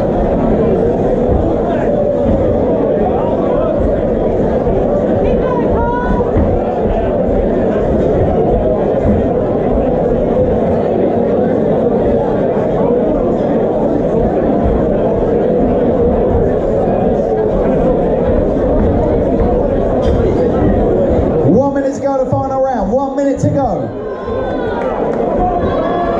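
A large crowd murmurs and cheers in a big echoing hall.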